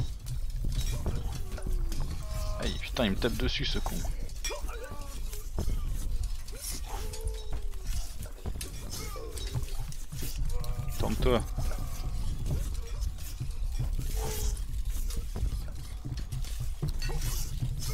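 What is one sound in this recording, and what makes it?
Swords clash repeatedly in a fight.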